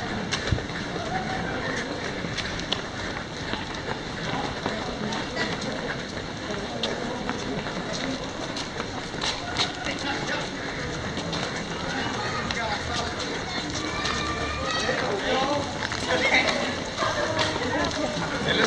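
Footsteps patter on pavement as people run past.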